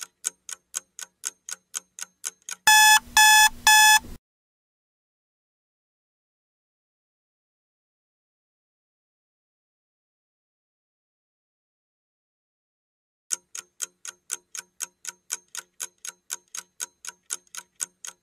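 A clock ticks quickly and steadily.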